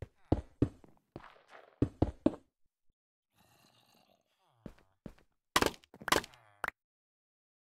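Blocks thud and click as they are placed and broken.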